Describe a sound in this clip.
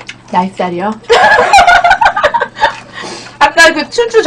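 Two young women laugh together.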